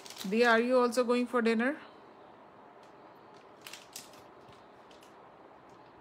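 A plastic bag crinkles in someone's hand.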